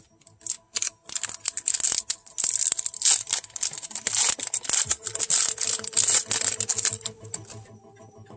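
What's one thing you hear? Playing cards rustle and riffle as they are shuffled close by.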